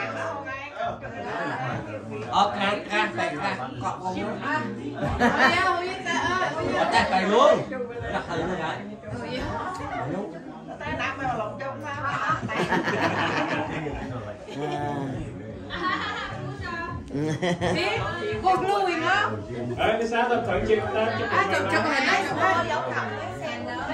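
Several women talk and chat nearby.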